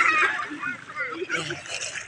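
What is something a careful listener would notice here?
A small child splashes in shallow water.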